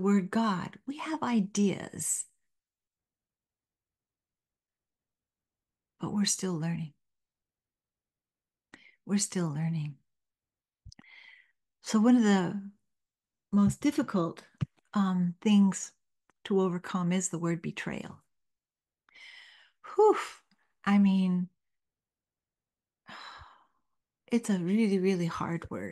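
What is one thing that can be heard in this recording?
An elderly woman speaks calmly and closely into a microphone, with pauses.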